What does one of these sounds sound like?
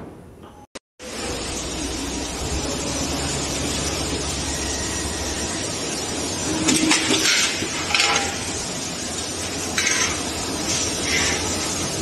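A metal forming machine runs with a steady loud rumble and rattle.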